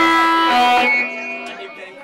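A band plays loudly and a chord rings out, then stops.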